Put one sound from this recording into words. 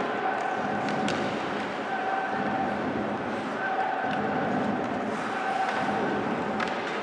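Ice skates scrape and hiss across the ice.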